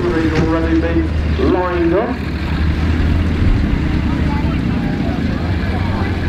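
A diesel engine rumbles as a military vehicle drives past close by.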